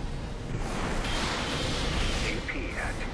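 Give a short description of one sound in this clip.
Energy blasts crackle and explode loudly.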